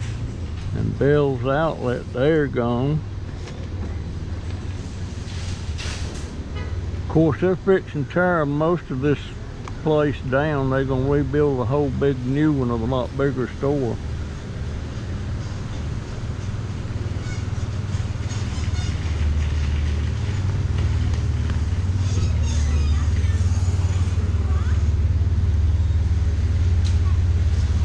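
A mobility scooter's electric motor hums steadily.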